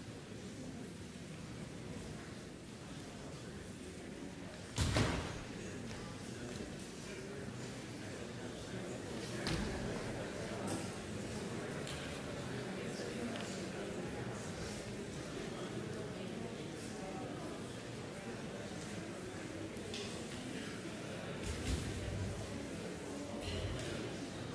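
An audience murmurs and shifts quietly in a large hall.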